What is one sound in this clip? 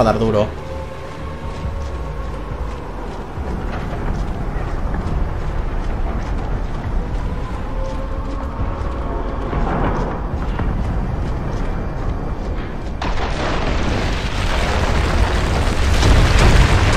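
Heavy boots run on cobblestones.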